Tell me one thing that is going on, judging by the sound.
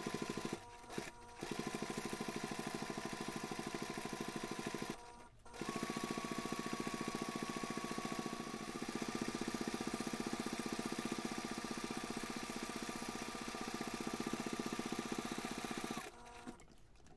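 A sewing machine stitches with a fast, steady whirring rattle.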